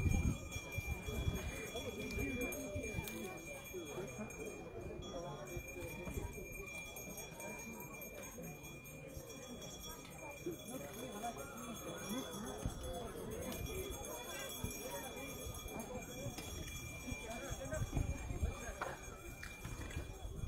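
Adult men and women talk quietly nearby.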